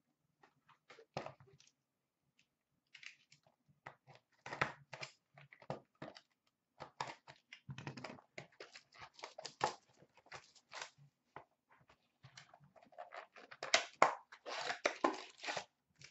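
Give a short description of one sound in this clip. Cards rustle and click softly as a hand flips through them.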